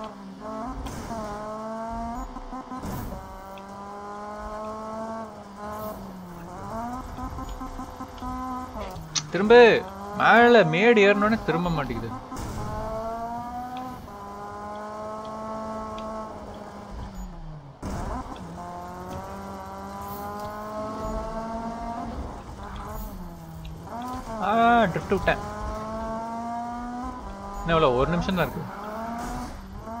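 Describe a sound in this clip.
A car engine revs hard, climbing in pitch and dropping with each gear change.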